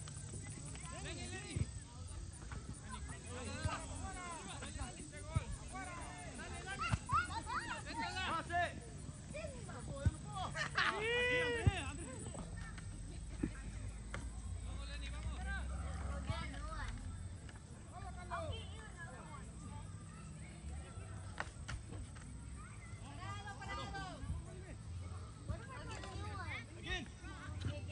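Men shout and call out at a distance outdoors.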